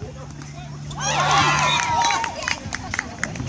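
A crowd of men cheers loudly.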